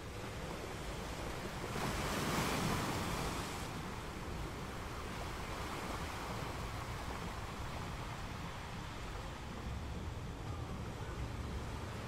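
Ocean waves crash and roar steadily against rocks.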